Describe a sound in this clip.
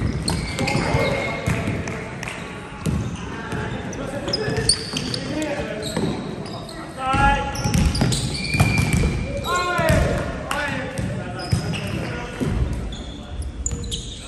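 A volleyball is struck with hands in an echoing gym hall.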